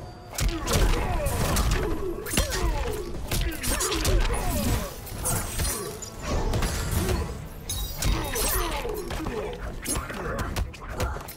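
Fighters grunt and yell with effort.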